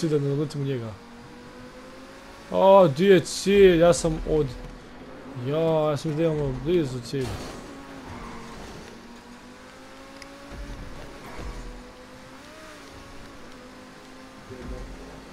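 A sports car engine roars steadily as the car speeds along.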